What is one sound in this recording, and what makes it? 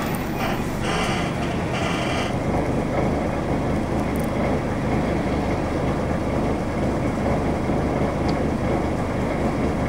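Wind rumbles steadily outdoors.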